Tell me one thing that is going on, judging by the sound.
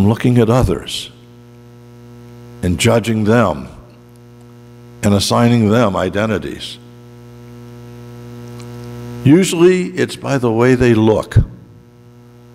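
A man speaks calmly through a microphone in a large echoing hall, in short phrases with pauses.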